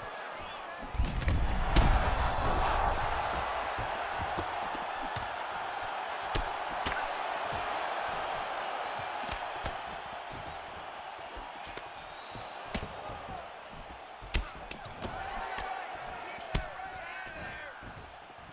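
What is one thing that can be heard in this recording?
A crowd roars and cheers loudly.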